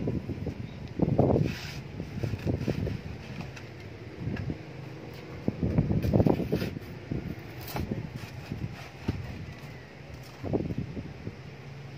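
A small hand trowel scrapes through potting soil in a pot.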